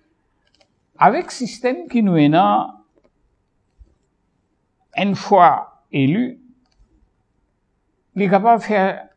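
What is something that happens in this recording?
An elderly man speaks calmly and clearly into a close microphone, in short phrases with pauses.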